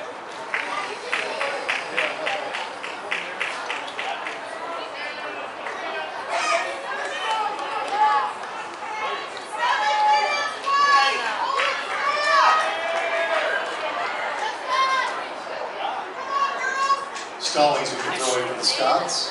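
Young women shout to each other across an open field, heard from a distance.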